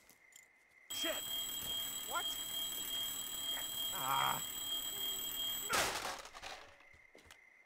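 An alarm rings loudly and steadily.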